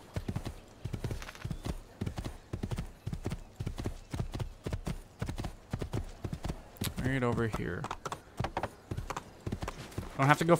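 A horse gallops with quick, rhythmic hoofbeats on soft ground.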